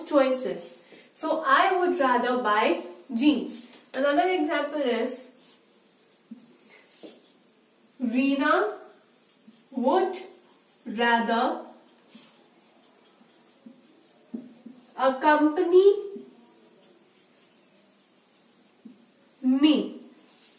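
A young woman speaks calmly and clearly into a close microphone, explaining in short phrases with pauses.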